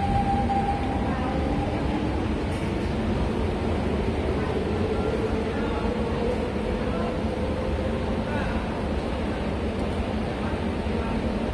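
A train hums steadily while idling beside a platform.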